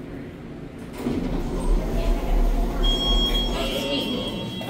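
An elevator hums as it moves.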